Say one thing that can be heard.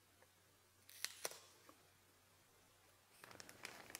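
Gloved hands rub and crinkle against a plastic container.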